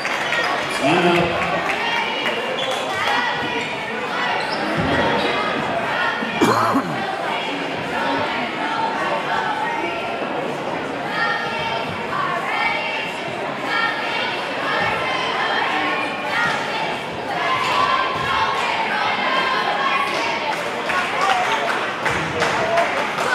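A crowd chatters and cheers loudly in a large echoing gym.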